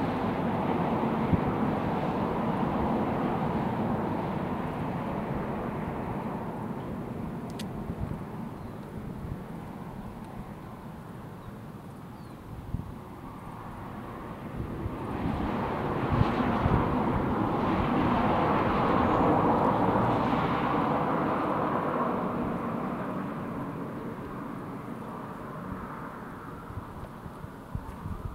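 Climbing shoes scrape and tap against rock.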